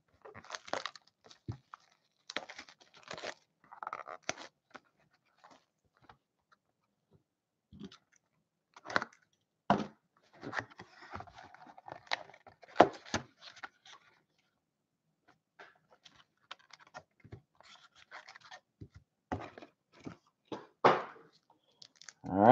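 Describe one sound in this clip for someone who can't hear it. Hands handle and tap a cardboard box on a table.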